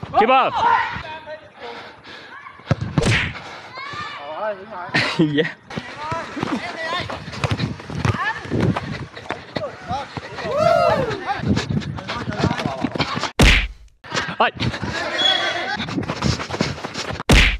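A football is kicked on artificial turf.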